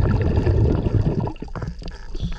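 Water rumbles and bubbles, muffled underwater.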